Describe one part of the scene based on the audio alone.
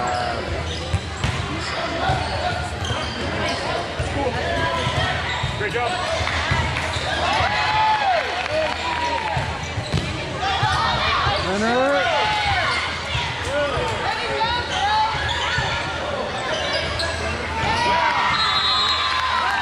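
Young girls shout and call out to each other in a large echoing hall.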